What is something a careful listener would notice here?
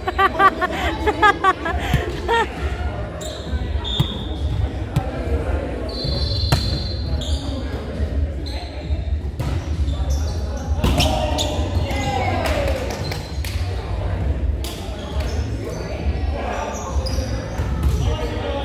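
A volleyball is struck and bounces in a large echoing gym.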